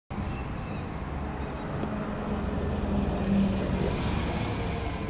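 A bus engine drones as it drives past close by.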